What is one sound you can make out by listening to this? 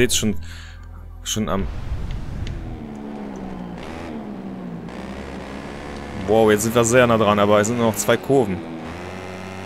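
A motorcycle engine whines at high revs, rising and falling with gear changes.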